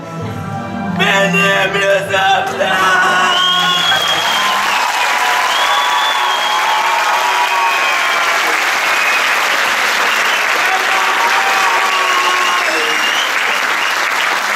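A man declaims loudly and emotionally in a large echoing hall.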